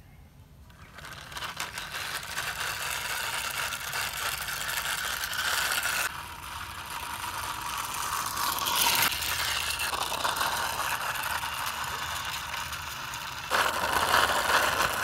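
A small toy car's wheels roll and scrape over rough concrete.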